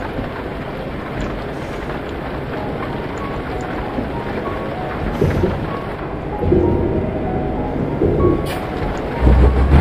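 A truck engine rumbles steadily while driving on a motorway.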